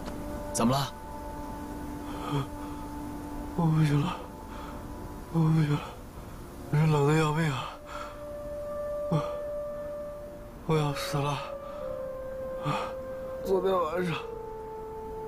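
A man speaks weakly in short, trembling bursts, close by.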